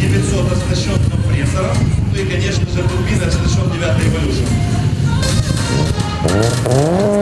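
A powerful car engine rumbles loudly at idle nearby.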